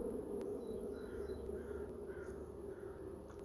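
A young boy speaks softly, close to the microphone.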